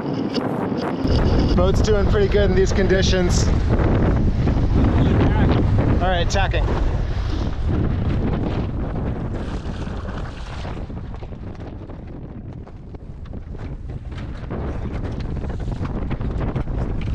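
Waves splash against the side of a small boat.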